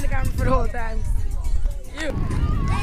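A boy talks excitedly close by.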